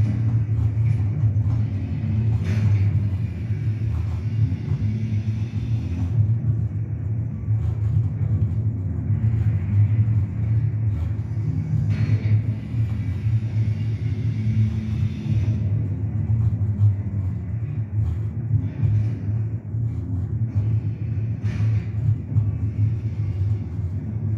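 Video game sounds play through a speaker in a room.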